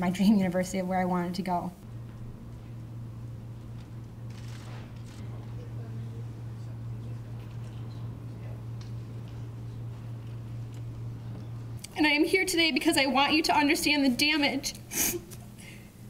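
A young woman speaks emotionally into a microphone, her voice breaking.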